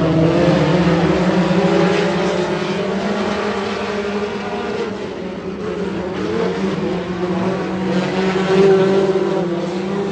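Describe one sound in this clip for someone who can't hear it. Several race car engines roar loudly around a dirt track, rising and falling in pitch.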